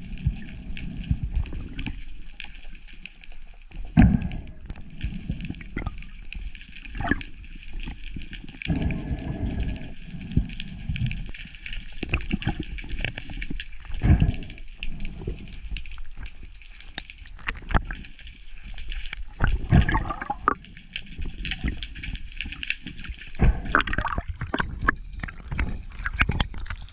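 Muffled underwater rumbling and crackling sounds go on throughout.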